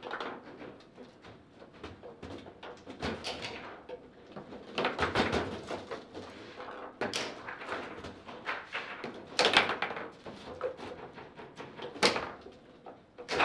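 Foosball rods rattle and spin.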